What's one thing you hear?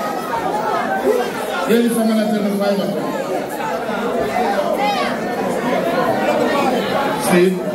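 A crowd of young adults talks and shouts loudly over one another.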